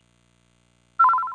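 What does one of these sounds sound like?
A bright electronic chime rings out.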